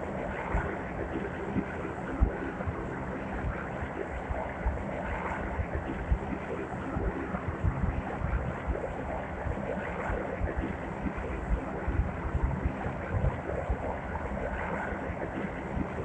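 A plane's propeller engines drone steadily.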